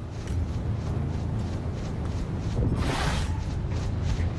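A crackling energy burst whooshes close by.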